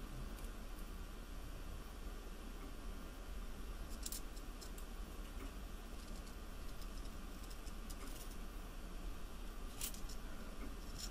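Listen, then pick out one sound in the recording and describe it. Wire rustles and clicks against a metal clamp as hands twist it.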